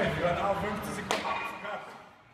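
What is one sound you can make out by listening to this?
Two men slap hands in a high five.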